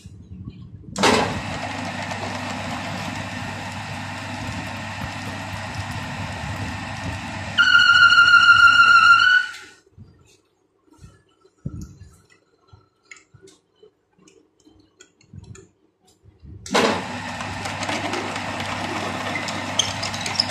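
A lathe motor hums and whirs as the chuck spins.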